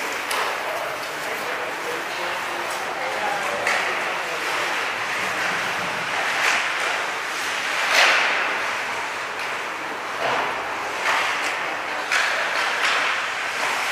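Hockey sticks strike pucks with sharp clacks, echoing in a large hall.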